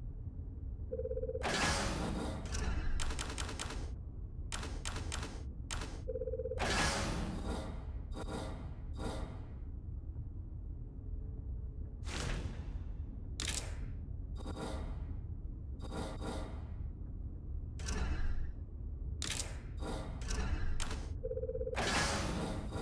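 Short game menu clicks and beeps sound as items are selected.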